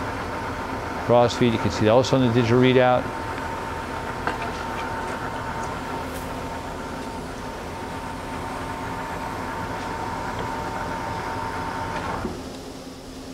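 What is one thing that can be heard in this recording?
A lathe motor hums steadily and then shuts off.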